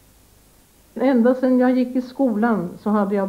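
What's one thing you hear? An elderly woman speaks slowly and calmly, close by.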